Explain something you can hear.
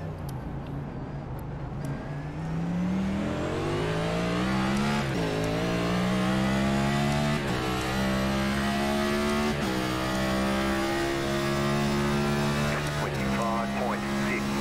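A racing car engine roars, revving up through the gears with sharp drops at each shift.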